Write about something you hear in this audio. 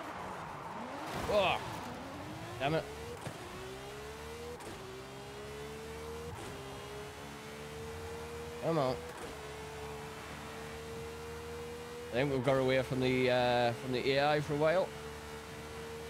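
Tyres screech as a car drifts through a corner.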